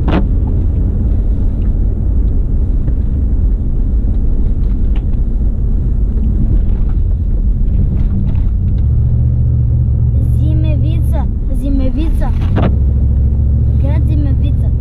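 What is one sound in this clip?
Tyres crunch over snow.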